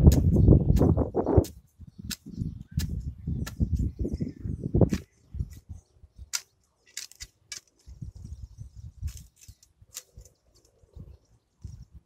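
A rake scrapes and drags across rough soil and grass.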